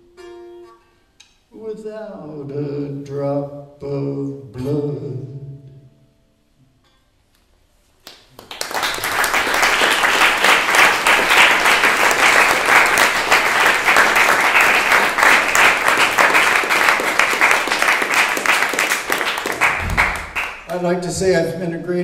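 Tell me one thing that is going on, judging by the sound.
An elderly man speaks slowly into a microphone in an echoing hall.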